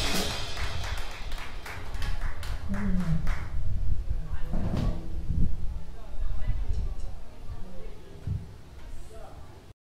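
An upright bass is plucked in a walking line.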